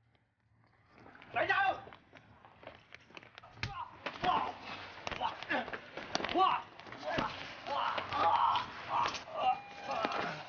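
A man shouts forcefully.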